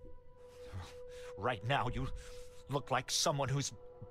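An older man speaks accusingly and demands an explanation.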